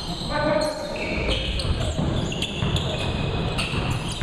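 A basketball is dribbled on a hardwood floor in an echoing gym.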